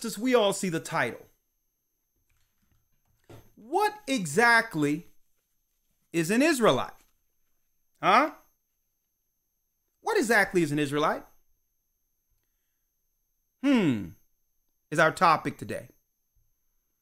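A man speaks with emphasis into a close microphone, in short bursts with pauses.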